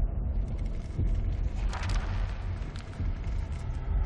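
A heavy book creaks and thuds open.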